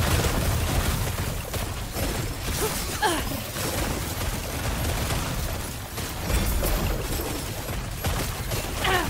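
Spells burst and crackle in rapid bursts of game combat.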